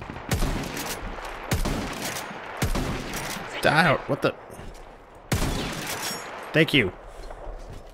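Gunshots crack and boom loudly.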